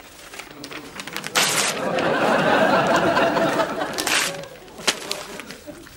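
Paper and cloth rustle in a man's hands.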